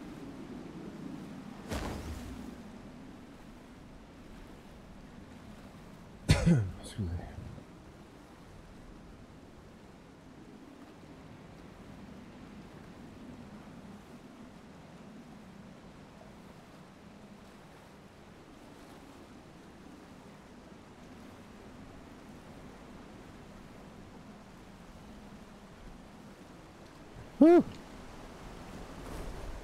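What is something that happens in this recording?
Water splashes and rushes against a moving boat's hull.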